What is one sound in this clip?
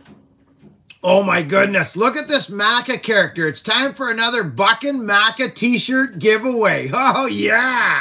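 A middle-aged man talks with animation, close by.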